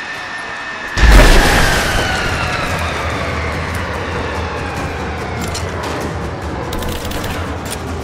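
A loud blast booms, then rumbles away slowly.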